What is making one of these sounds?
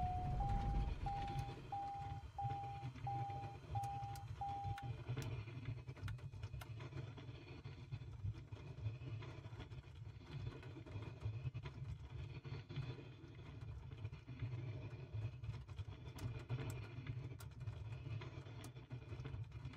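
A small plane's engine idles with a low, steady rumble.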